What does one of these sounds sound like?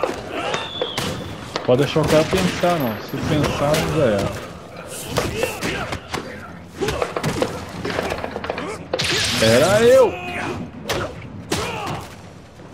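Punches and kicks land with heavy, smacking thuds.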